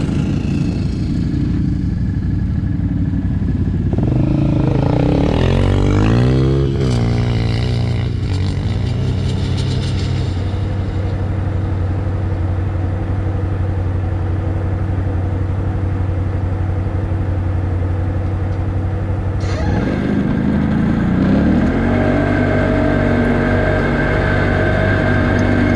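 A vehicle engine drones steadily nearby.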